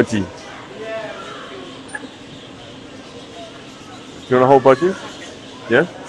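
A small parakeet chirps close by.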